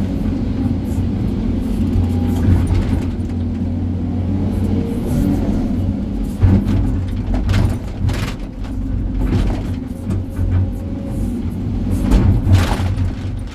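A diesel engine rumbles steadily up close.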